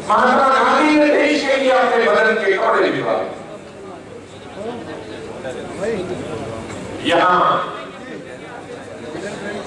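An elderly man speaks forcefully into a microphone, his voice carried over loudspeakers.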